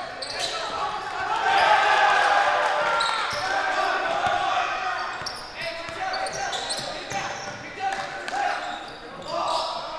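Sneakers squeak sharply on a wooden court in a large echoing gym.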